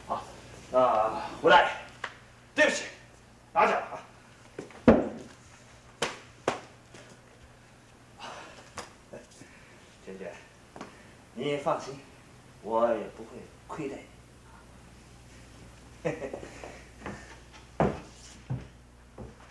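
A man speaks politely and calmly, up close.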